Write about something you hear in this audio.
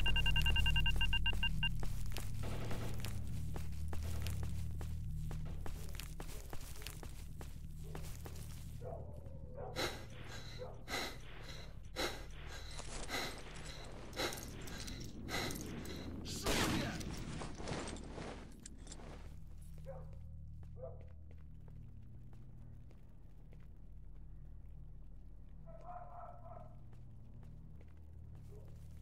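Footsteps tread on grass and concrete.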